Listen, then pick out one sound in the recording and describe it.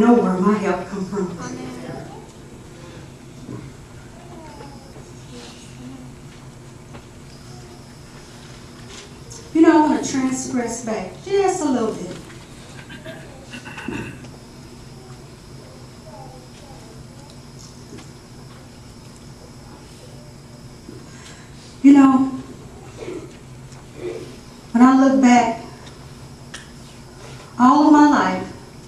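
A woman speaks into a microphone over a loudspeaker, in bursts with long pauses.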